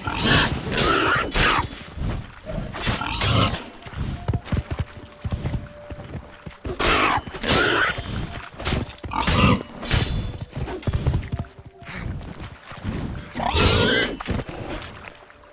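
A sword slashes and strikes a bear.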